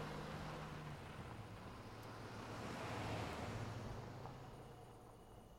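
A car engine hums and tyres roll past outdoors.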